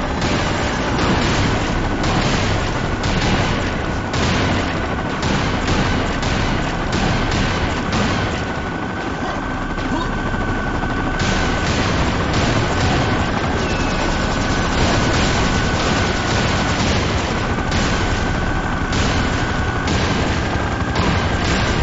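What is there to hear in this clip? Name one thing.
Explosions burst repeatedly.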